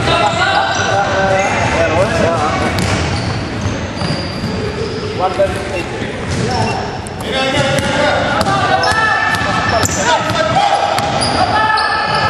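Young men shout and call out to each other in a large echoing gym.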